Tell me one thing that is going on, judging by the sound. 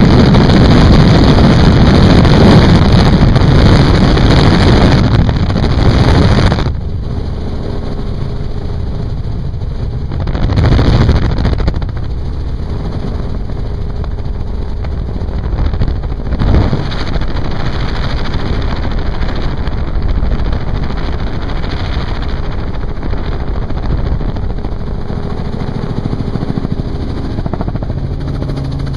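A helicopter engine and rotor drone loudly and steadily.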